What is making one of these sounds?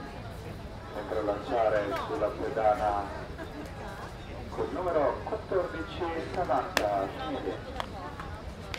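Players chant and cheer loudly outdoors.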